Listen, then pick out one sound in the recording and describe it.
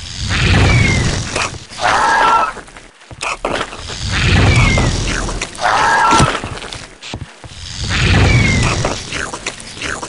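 Claws swipe through the air.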